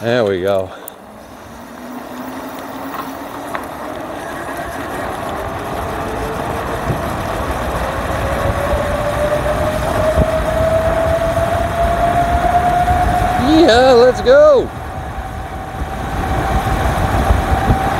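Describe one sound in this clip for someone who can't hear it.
Wind rushes past, growing louder as speed builds.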